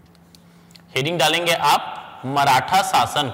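A man speaks clearly and loudly into a close microphone.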